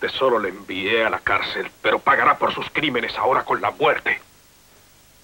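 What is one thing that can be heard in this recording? A man speaks tensely through clenched teeth, close by.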